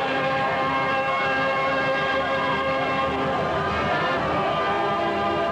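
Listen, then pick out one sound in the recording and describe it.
A costumed string band plays lively music outdoors.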